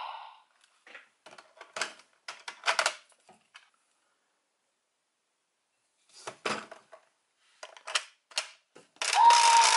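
Plastic toy parts click and snap as they are handled.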